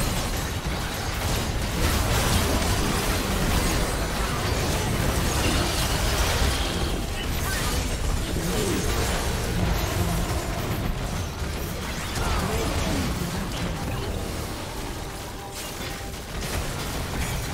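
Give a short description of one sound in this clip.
Spells crackle and blasts boom in a fast game battle.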